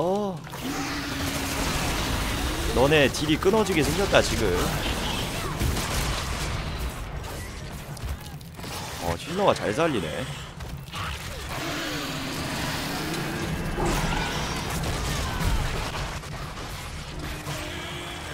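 Video game fight sounds of blasts and creature shrieks play throughout.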